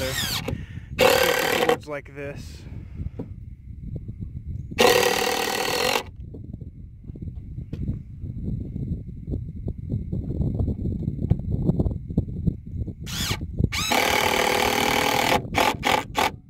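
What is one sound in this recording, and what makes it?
A cordless drill whirs in short bursts, driving screws into wood.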